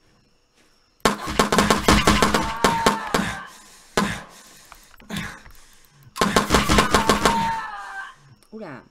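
A pistol fires a rapid burst of shots.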